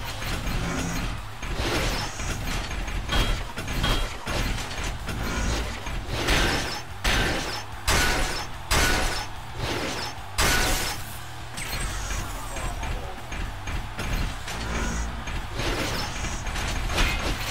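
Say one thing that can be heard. Heavy metal punches clang and thud again and again.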